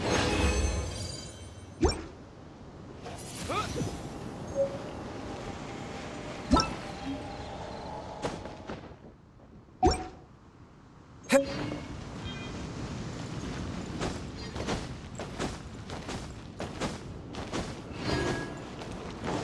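Short game sound effects chime and whoosh now and then.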